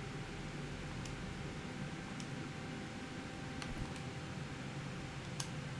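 Short soft clicks sound as a menu selection changes.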